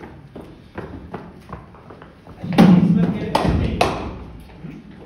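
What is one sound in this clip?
Footsteps thud quickly on a padded floor.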